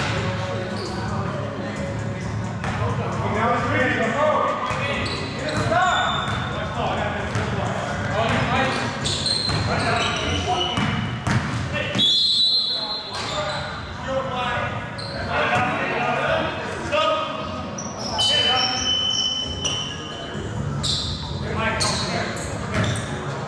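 Sneakers squeak sharply on a wooden floor.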